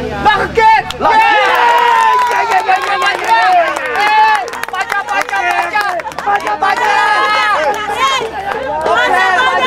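Men cheer loudly in celebration.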